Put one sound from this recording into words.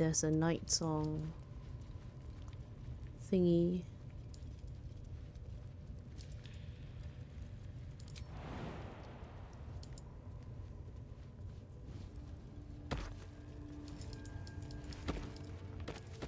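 Footsteps shuffle over rocky ground.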